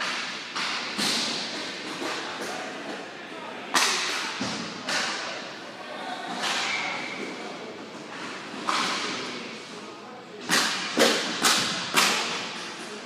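Sticks knock and slap a ball with sharp cracks that echo around a large hall.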